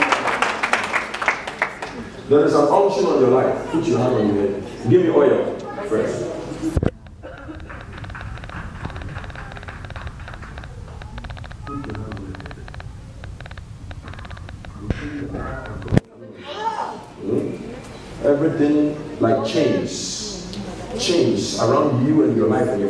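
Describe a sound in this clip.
A man speaks loudly and with fervour close by.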